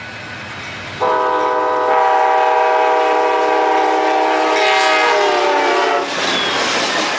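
A train horn blares loudly as a train approaches.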